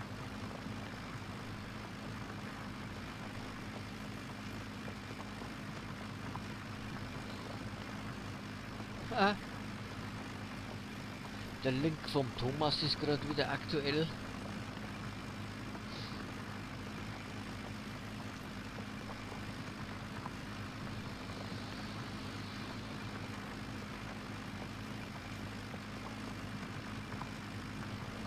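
A tractor engine hums steadily at low speed.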